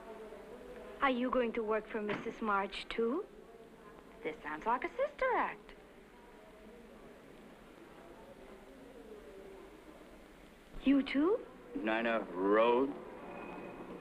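Young women talk with each other close by.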